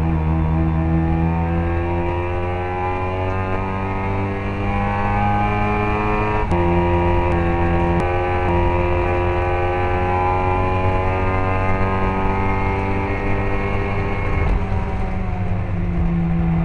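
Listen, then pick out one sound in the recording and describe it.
A racing car engine roars loudly up close, its pitch climbing and dropping with gear changes.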